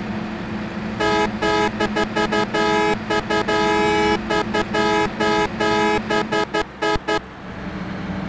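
A bus horn honks in quick repeated bursts.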